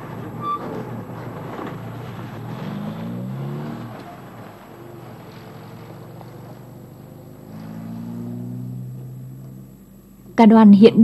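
A van engine hums as the van pulls away and fades into the distance.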